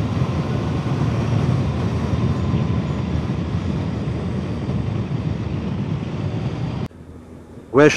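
A motorcycle engine hums with wind rushing past.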